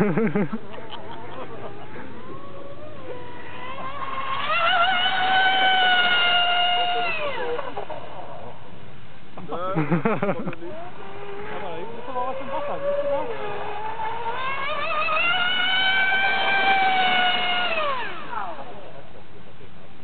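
A small model boat's motor whines at high speed, rising and falling in pitch.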